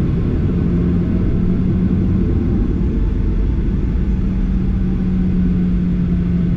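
Aircraft wheels rumble over a runway.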